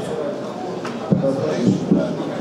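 A man speaks into a microphone over a loudspeaker.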